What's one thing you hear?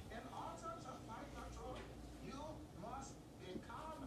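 A sofa seat's metal hinge creaks as the seat is lifted.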